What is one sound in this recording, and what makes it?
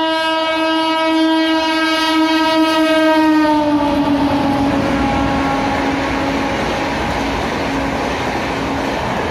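A locomotive horn blares loudly and drops in pitch as it passes close by.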